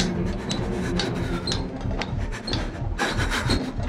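Hands and feet knock on wooden ladder rungs.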